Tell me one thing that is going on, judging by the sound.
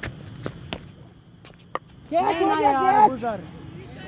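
A cricket bat knocks a ball with a sharp crack.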